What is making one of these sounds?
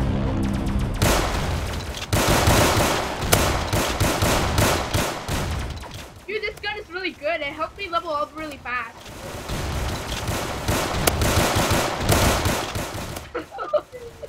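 A shotgun fires in rapid bursts.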